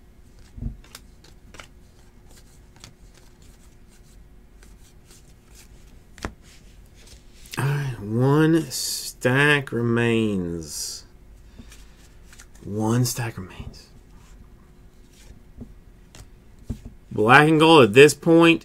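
Trading cards flick and rustle softly as they are shuffled by hand.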